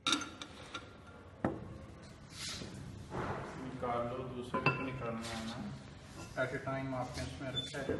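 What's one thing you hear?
A heavy glass lid scrapes and clinks against a glass rim.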